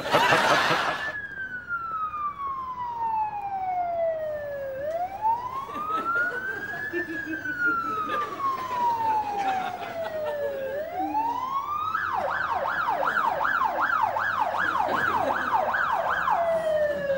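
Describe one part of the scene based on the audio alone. An ambulance siren wails, changing from slow to fast rising and falling tones.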